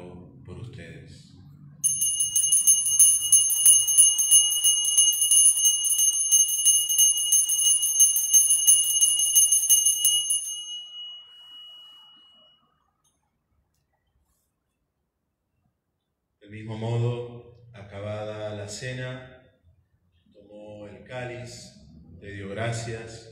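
A man speaks slowly and solemnly through a microphone in an echoing room.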